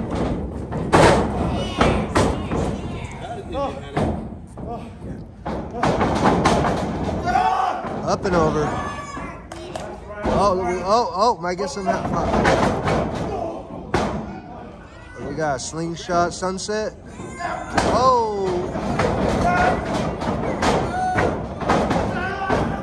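Bodies thud onto a wrestling ring's canvas.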